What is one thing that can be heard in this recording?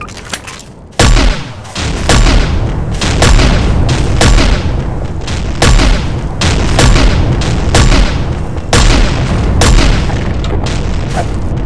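Gunshots from a rifle ring out in loud, repeated bursts.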